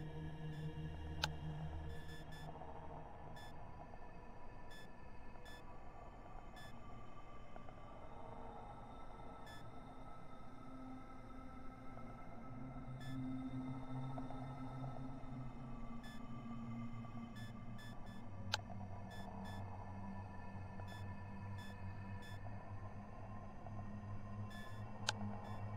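Soft interface ticks sound as a pointer moves across menu icons.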